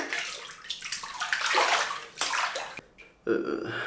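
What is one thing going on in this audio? Water splashes and swirls around a hand.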